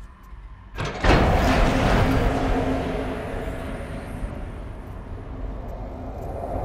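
A fire bursts out with a loud whoosh and keeps roaring, slowly dying down.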